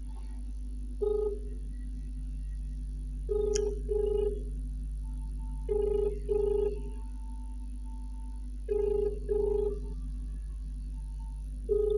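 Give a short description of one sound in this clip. A phone's ringing tone beeps quietly through its speaker.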